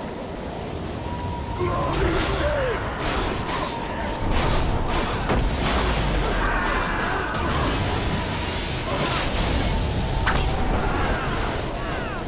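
Magic spells crackle and blast in a game battle.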